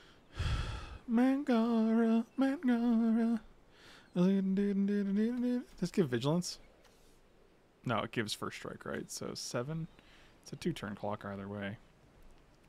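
A middle-aged man talks calmly into a close microphone, with pauses.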